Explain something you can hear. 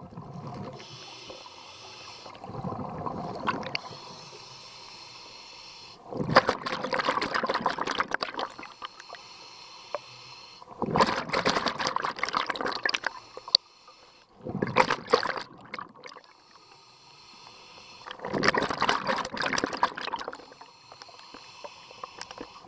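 A diver breathes in through a regulator with a hissing rasp.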